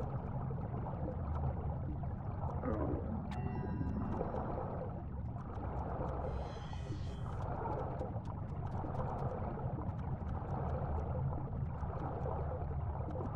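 Water swirls and bubbles as a swimmer strokes underwater.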